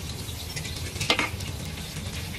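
A metal ladle clinks against a wok.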